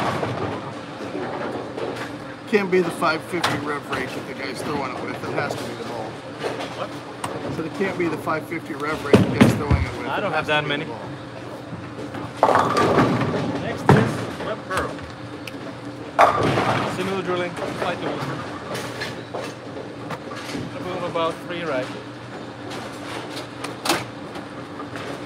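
A man speaks with animation close by in a large echoing hall.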